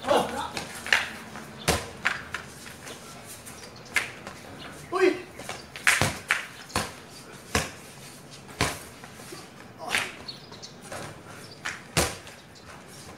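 A basketball thumps against a backboard and rim.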